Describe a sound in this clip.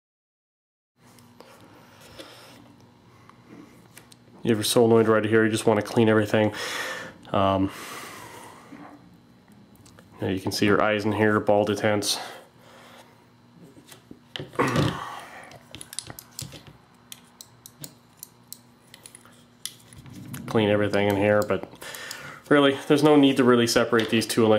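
Plastic and metal parts of a paintball marker click and rattle as hands take it apart.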